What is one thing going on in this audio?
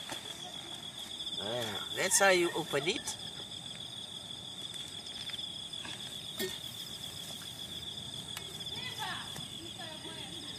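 A machete chops into a coconut with short knocks.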